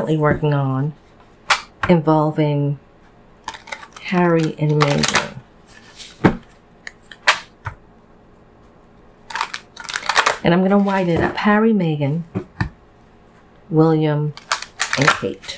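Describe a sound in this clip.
Playing cards are shuffled by hand with soft flicking and slapping.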